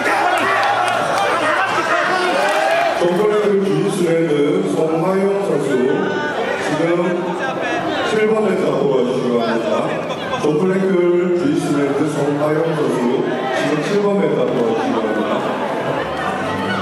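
A crowd of young men and women shouts and cheers loudly in a large echoing hall.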